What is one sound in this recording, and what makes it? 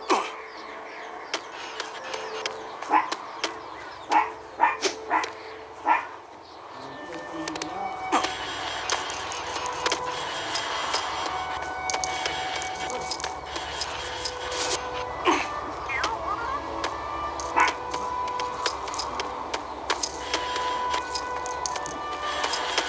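Music from a video game plays throughout.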